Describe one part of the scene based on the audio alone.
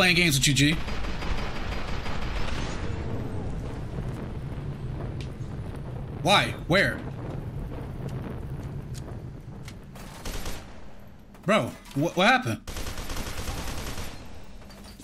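Gunfire bursts rapidly in a game.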